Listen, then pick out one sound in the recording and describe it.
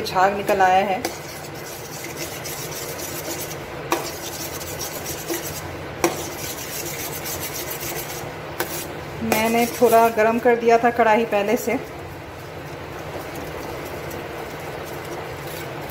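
A metal spoon stirs cream in a steel wok.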